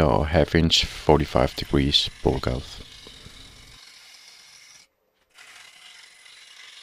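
A gouge scrapes and cuts into spinning wood.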